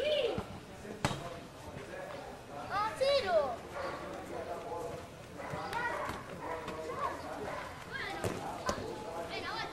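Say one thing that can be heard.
A foot kicks a ball with a thud.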